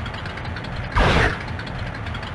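A short whooshing game sound effect plays.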